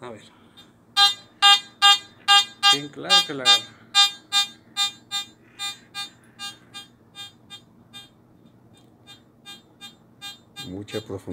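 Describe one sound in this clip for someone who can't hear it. A metal detector beeps rapidly and repeatedly, the beeps slowly spreading out.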